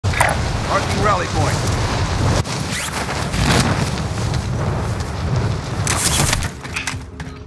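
Wind rushes loudly during a fast fall through the air.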